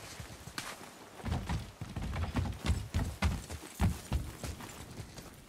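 Heavy footsteps thud on wooden planks and stairs.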